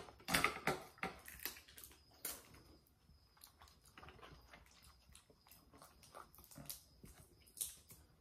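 A lobster shell cracks and crunches.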